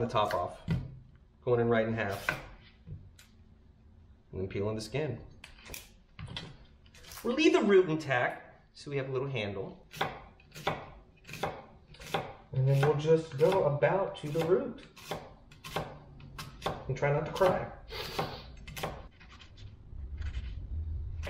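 A knife chops an onion on a cutting board.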